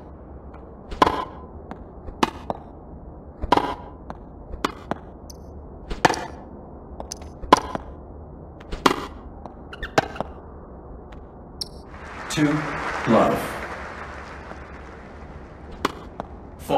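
A tennis ball is struck with a racket, back and forth.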